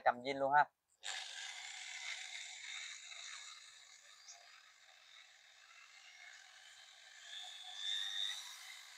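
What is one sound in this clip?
An electric polisher whirs steadily.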